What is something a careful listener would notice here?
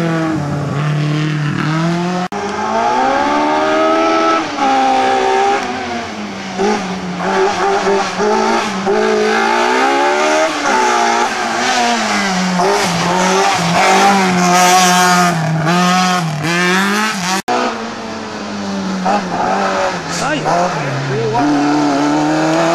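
A small racing car engine revs hard and roars past.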